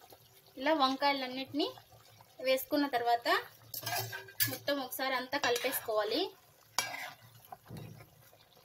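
A spoon stirs a thick sauce in a pot.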